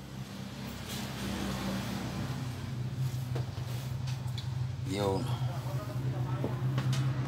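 Hands press and fold soft dough with quiet thuds.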